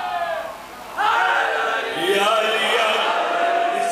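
A man sings a solo lament loudly through a microphone.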